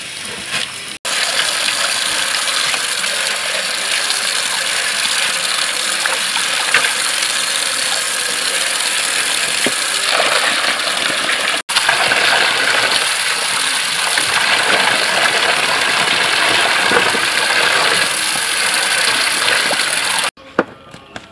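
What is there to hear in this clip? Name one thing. Hands splash and rub fish in water.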